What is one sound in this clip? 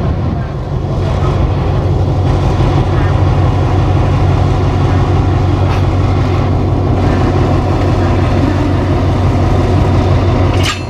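A diesel locomotive engine rumbles and idles loudly close by.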